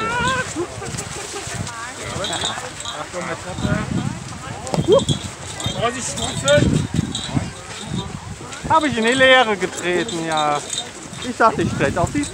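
Several young adults talk and laugh close by, outdoors.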